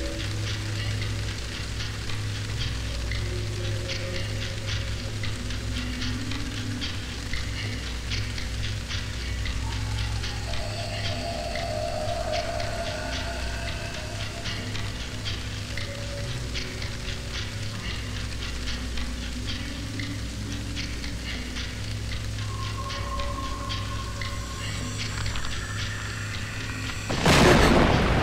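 A woman's bare feet pad softly down stone stairs.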